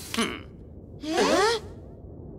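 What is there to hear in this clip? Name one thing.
Children cry out in alarm.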